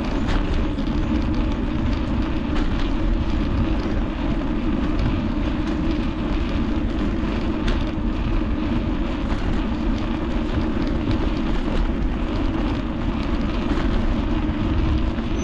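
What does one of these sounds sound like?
Wind rushes steadily over a microphone outdoors.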